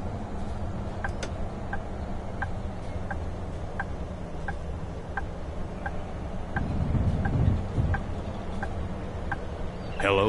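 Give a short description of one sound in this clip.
A bus turn signal ticks at an even pace.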